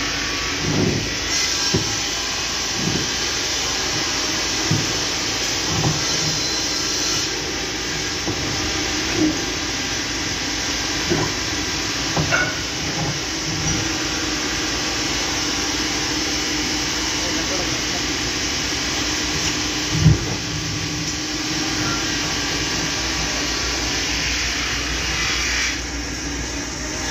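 A heavy truck engine rumbles steadily as the truck rolls slowly in reverse.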